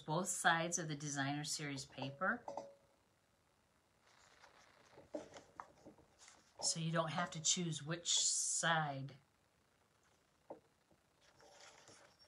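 Stiff paper cards rustle softly as they are opened and closed.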